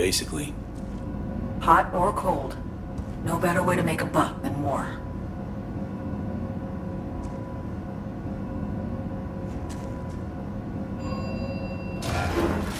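A lift rumbles and hums steadily as it moves.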